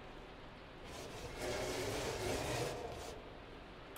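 A cat scratches at a wooden door.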